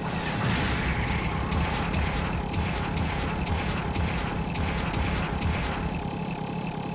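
Heavy metal footsteps thud steadily.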